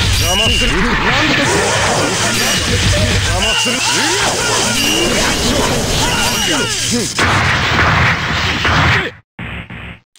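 Energy blasts crackle and boom in quick bursts.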